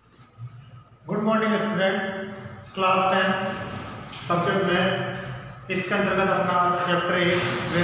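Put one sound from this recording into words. A man speaks clearly into a close microphone, in a small echoing room.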